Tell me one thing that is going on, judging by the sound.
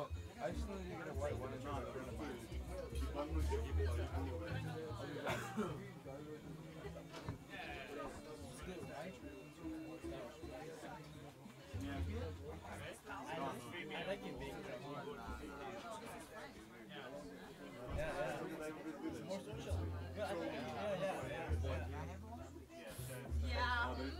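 A jazz band plays in a small room.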